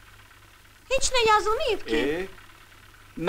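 A young woman speaks with feeling.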